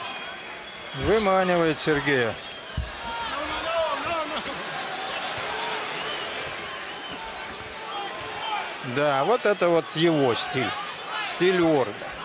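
Punches thud against a boxer's body.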